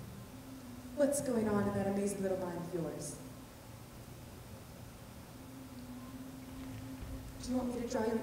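A young man calls out in a long, sung voice in a large echoing hall.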